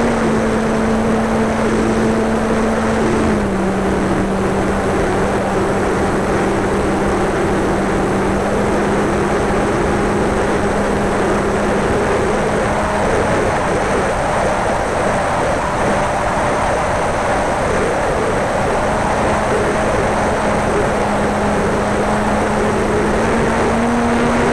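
A small electric motor whines steadily, shifting pitch now and then.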